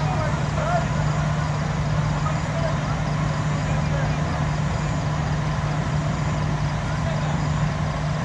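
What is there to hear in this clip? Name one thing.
Several men talk quietly in a group some distance away outdoors.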